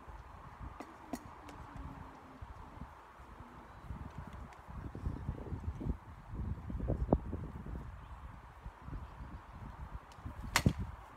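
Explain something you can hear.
Swords knock sharply against shields.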